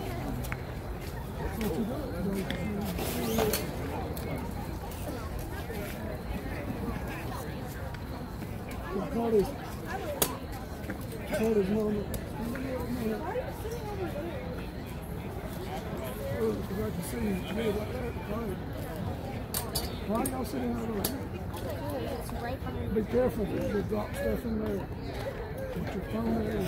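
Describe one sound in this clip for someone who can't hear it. Young women shout and call out to each other across an open outdoor field.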